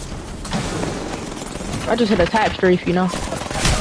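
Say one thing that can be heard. Gunshots crack in rapid bursts.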